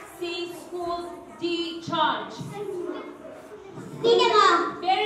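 A young girl speaks into a microphone with animation.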